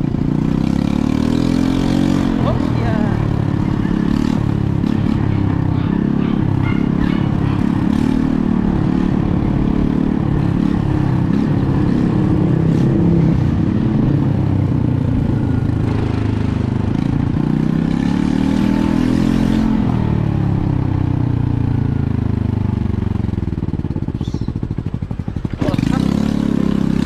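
A motorcycle engine hums steadily close by, its pitch rising and falling.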